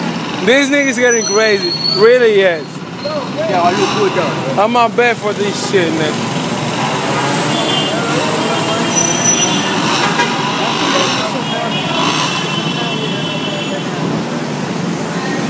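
Street traffic hums in the background outdoors.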